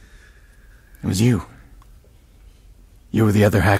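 A man speaks in a low, tense voice, close by.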